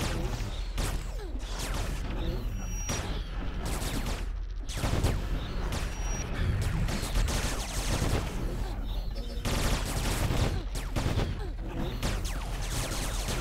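Magic blasts whoosh and crackle in quick bursts.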